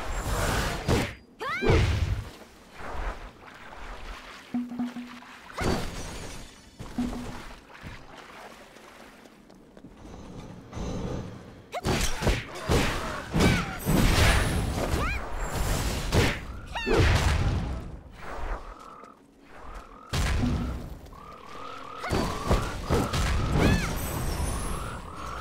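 Sword strikes and magic blasts whoosh and crash in quick bursts.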